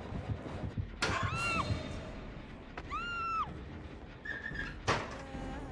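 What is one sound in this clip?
A wooden locker door bangs open.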